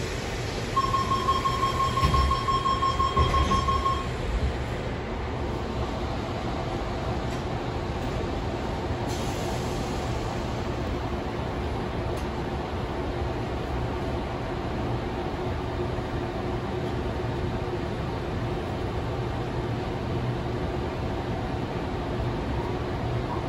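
A train rumbles and hums steadily as it rides along the tracks.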